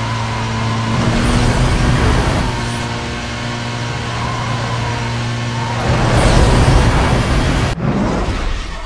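Wind rushes past a speeding car.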